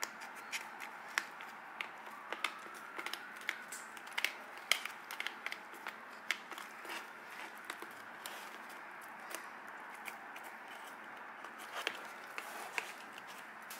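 Chopsticks click and scrape against a hard shell.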